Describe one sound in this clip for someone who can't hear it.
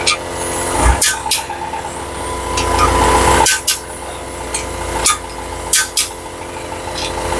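Metal engine parts clink and clatter as they are handled.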